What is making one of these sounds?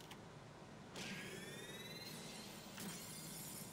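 A fast rising electronic whoosh sounds.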